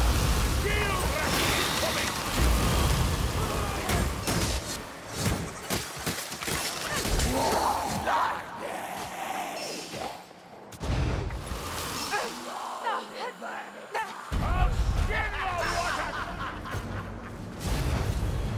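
Creatures snarl and shriek.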